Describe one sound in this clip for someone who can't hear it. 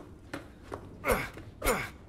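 A knife stabs into a body with a wet thud.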